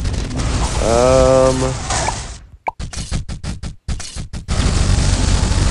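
Rapid popping and zapping game sound effects play.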